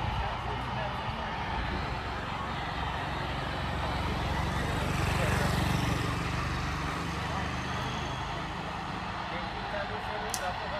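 A group of men talk among themselves outdoors at a distance.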